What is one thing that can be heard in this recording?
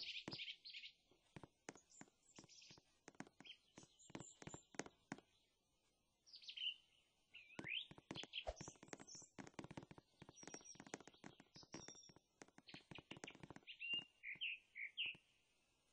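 Footsteps tap quickly on a wooden floor.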